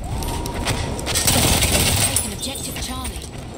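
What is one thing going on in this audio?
A machine gun fires rapid bursts in an echoing hall.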